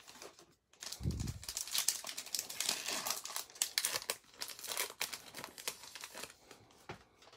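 A plastic wrapper crinkles and tears as it is opened.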